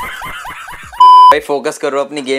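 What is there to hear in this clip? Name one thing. A steady electronic beep sounds briefly.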